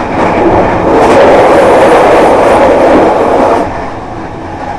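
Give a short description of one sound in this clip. A train's rumble grows louder and hollow as it crosses a steel bridge.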